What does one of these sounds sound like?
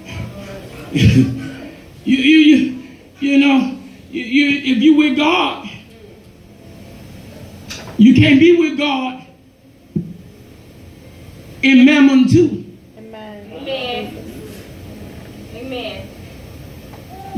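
A man speaks forcefully into a microphone, heard through loudspeakers in a room with echo.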